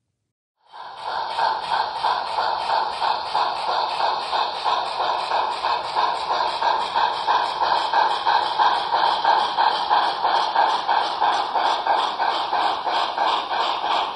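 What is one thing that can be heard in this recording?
Model train wheels rattle over the rails.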